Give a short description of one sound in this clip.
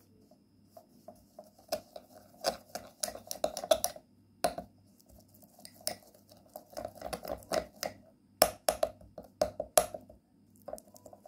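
A metal spoon clinks and scrapes against a glass bowl while stirring.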